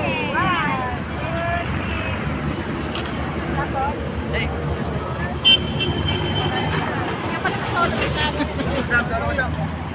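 A woman speaks close to a phone microphone.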